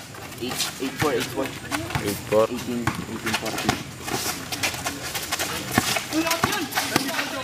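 A basketball bounces on concrete.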